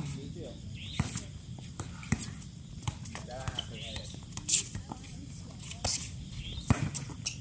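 A volleyball is hit with sharp thumps.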